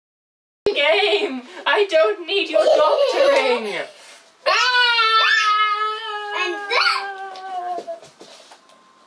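A young man talks and laughs nearby.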